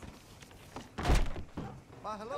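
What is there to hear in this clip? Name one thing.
A door bangs shut.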